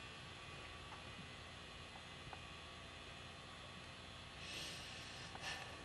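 A group of men talk quietly at a distance outdoors.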